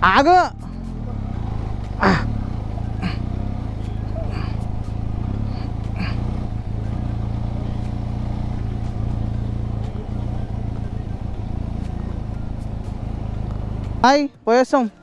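A motorcycle engine hums steadily on the move.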